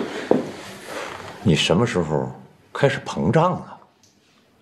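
A middle-aged man speaks sharply nearby.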